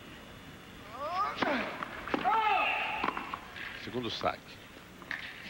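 A tennis ball is struck back and forth with sharp pops.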